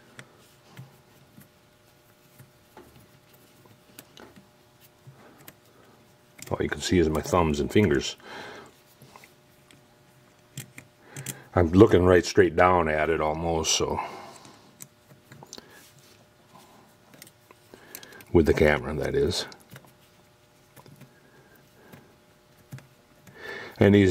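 A small metal key clicks and scrapes against metal parts.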